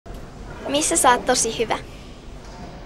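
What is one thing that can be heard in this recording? A young woman speaks briefly and cheerfully into a microphone.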